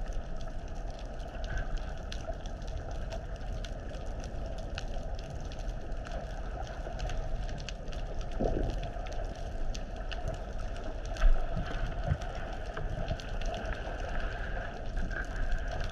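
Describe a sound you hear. Water hisses and rumbles in a steady, muffled underwater hush.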